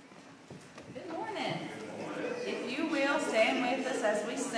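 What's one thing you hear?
A young woman speaks into a microphone in a large echoing hall.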